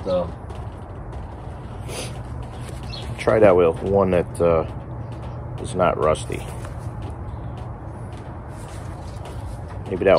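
A middle-aged man speaks calmly, close by.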